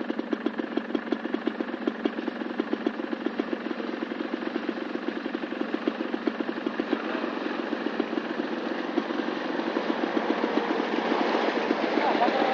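A pickup truck engine chugs steadily and grows louder as it approaches.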